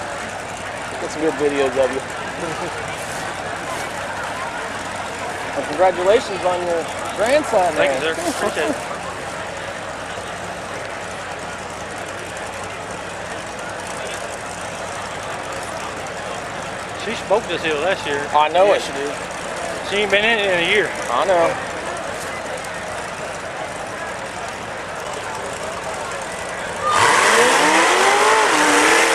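A large outdoor crowd murmurs and cheers.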